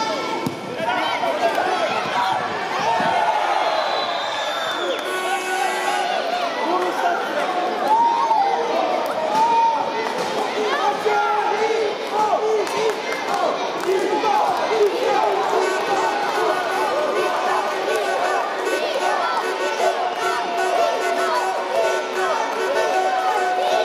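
A crowd of spectators chatters and cheers throughout.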